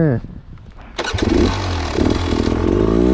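A motorbike engine starts and revs loudly.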